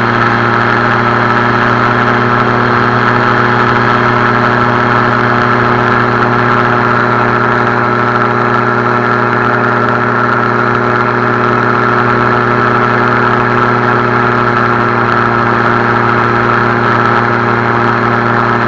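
A small aircraft engine drones loudly and steadily close by.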